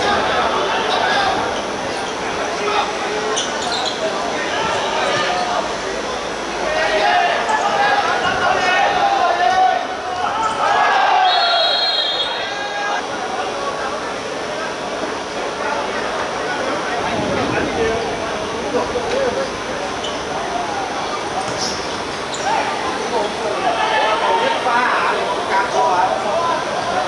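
A football thuds as it is kicked on a hard court.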